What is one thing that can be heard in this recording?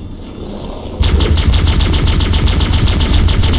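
An explosion roars loudly.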